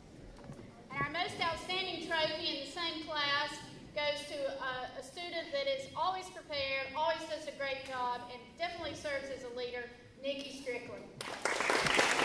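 A woman speaks calmly through a loudspeaker in a large echoing hall.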